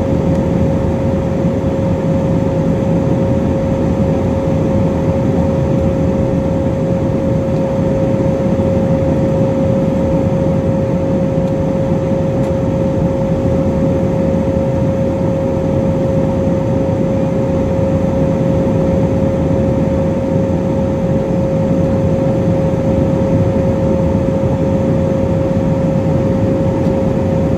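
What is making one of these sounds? An aircraft's engines roar steadily with a constant high hum.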